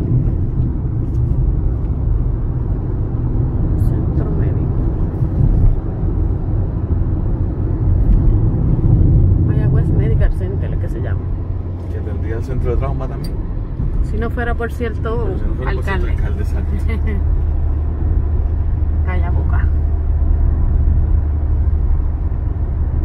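A car engine hums with a low road rumble from inside a moving car.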